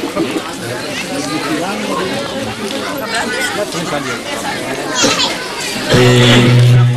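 A large crowd of women and men chatter outdoors.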